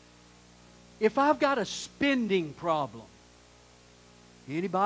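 A man speaks with emphasis through a microphone in a large room.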